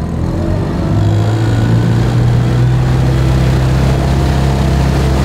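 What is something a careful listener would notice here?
Water splashes and hisses in a boat's wake.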